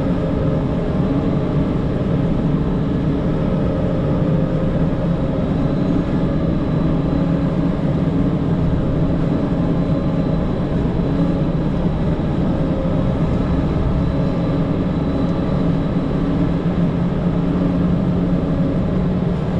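A heavy diesel engine rumbles steadily, heard from inside the cab.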